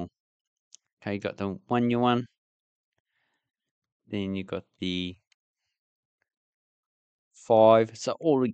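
A young man speaks casually and close into a microphone, in short bursts with pauses.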